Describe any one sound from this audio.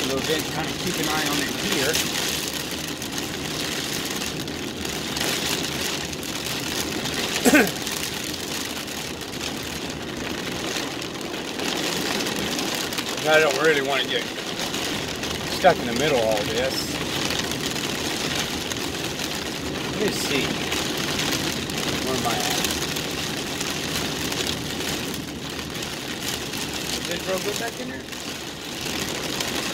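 Heavy rain drums on a car's windshield.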